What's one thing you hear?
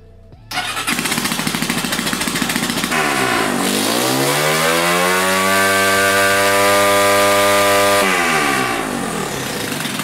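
A small engine starts up and idles with a rough, rapid putter.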